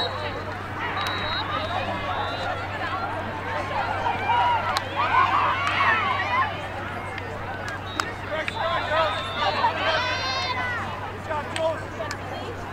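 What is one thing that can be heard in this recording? A crowd of young women and girls chatter and call out outdoors.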